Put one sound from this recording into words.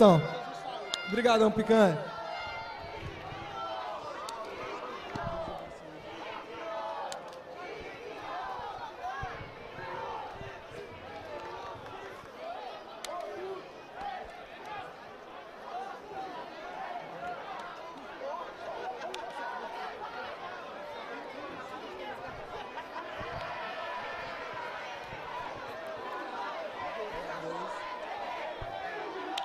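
A crowd of men and women chats and murmurs nearby outdoors.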